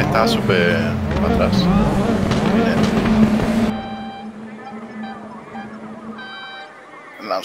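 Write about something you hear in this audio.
A race car engine drones steadily at a high, even pitch.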